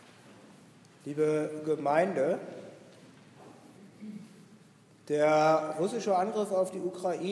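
An elderly man speaks slowly and solemnly into a microphone in an echoing hall.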